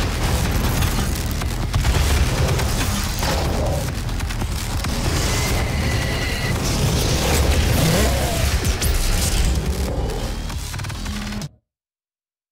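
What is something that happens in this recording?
Heavy gunfire booms and crackles.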